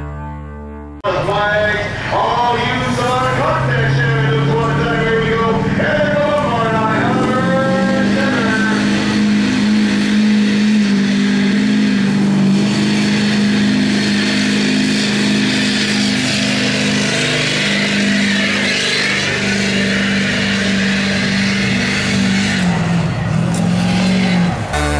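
A truck engine roars loudly and steadily.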